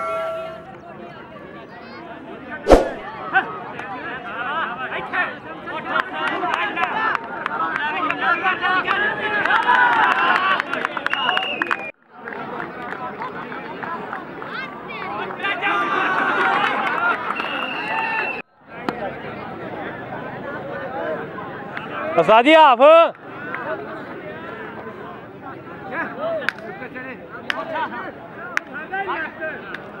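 A crowd of men shouts and cheers outdoors.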